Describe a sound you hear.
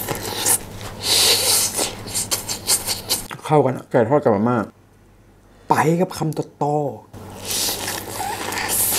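A young man slurps noodles.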